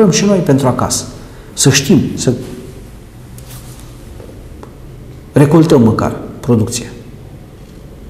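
A middle-aged man speaks calmly and clearly into a microphone, in short phrases with pauses.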